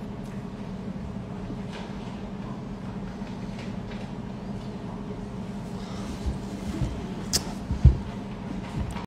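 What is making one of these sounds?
A man speaks quietly, close to a phone microphone.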